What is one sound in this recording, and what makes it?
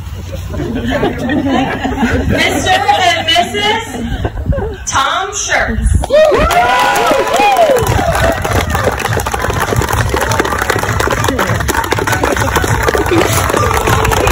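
A crowd of guests cheers and whoops outdoors.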